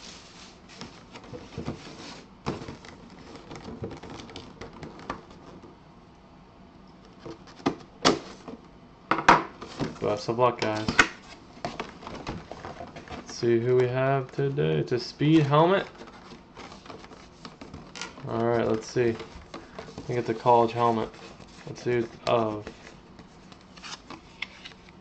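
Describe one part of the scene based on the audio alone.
Hands handle a cardboard box, which scrapes and taps.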